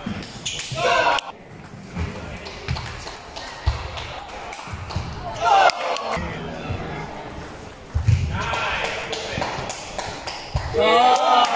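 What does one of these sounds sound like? A ping pong ball clicks back and forth on paddles and a table.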